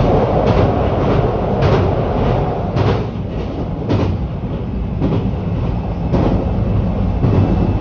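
Train wheels clack over rail joints at a regular pace.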